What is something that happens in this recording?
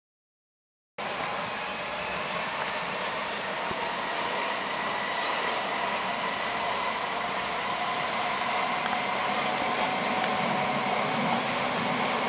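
A subway train rumbles and rattles along the tracks.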